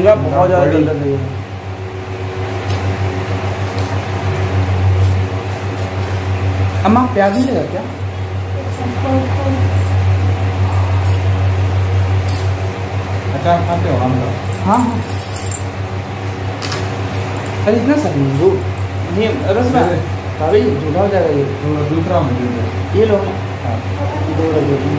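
A young man speaks close by with animation.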